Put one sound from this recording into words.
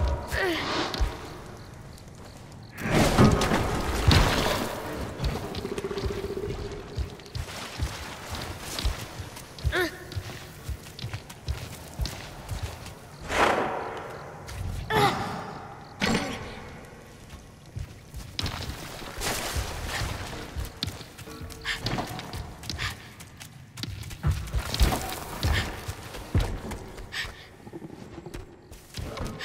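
A boy's light footsteps patter on stone.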